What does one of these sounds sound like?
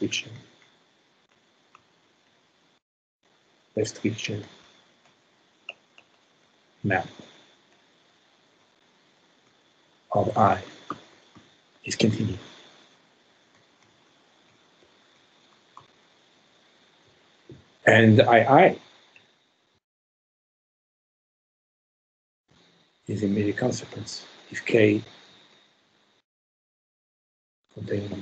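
A man speaks calmly in short phrases with long pauses, heard through an online call.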